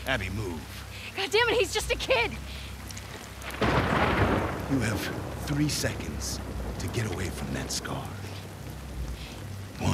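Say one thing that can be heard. A man threatens in a hard, commanding voice.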